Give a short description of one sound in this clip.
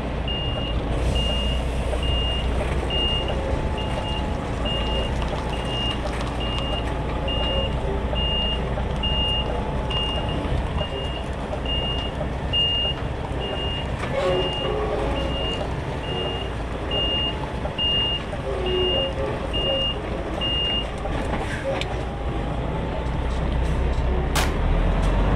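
A heavy truck engine rumbles steadily close by.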